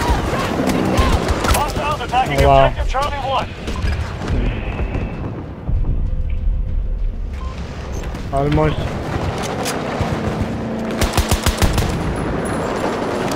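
A rifle fires rapid bursts of shots nearby.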